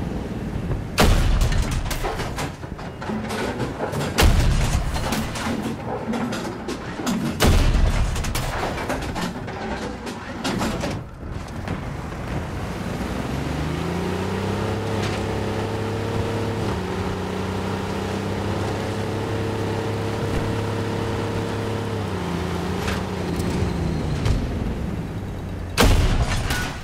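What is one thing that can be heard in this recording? A tank cannon fires with a heavy boom.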